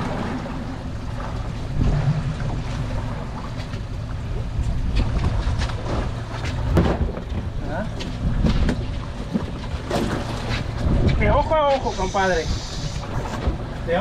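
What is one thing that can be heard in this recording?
Wind rumbles and buffets outdoors on open water.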